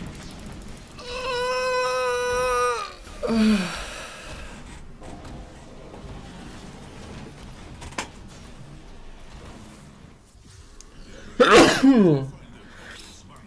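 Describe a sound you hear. A young man close to a microphone cries out loudly with excitement.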